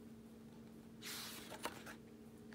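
A book page turns with a papery rustle.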